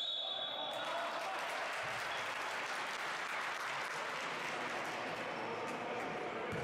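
Sneakers squeak on a hard floor in a large echoing hall.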